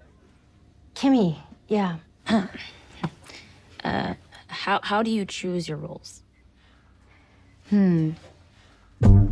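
A young woman speaks with animation nearby.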